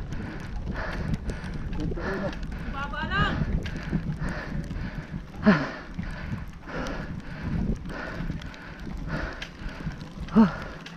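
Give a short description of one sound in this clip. Bicycle tyres roll and rattle over a rough, wet road.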